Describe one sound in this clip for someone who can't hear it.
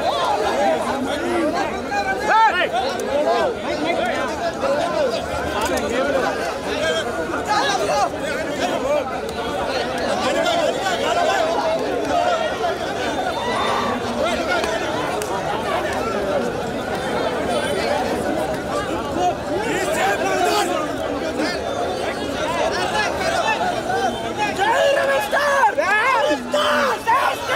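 A large crowd of young men shouts and cheers excitedly close by, outdoors.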